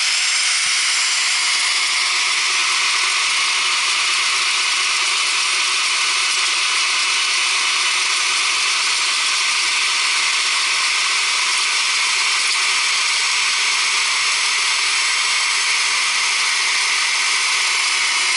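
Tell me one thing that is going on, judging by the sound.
An electric motor whines steadily as an auger bores into soil.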